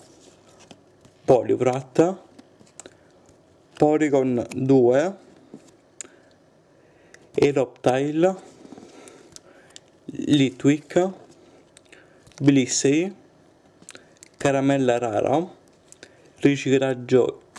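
Playing cards slide and rustle against each other.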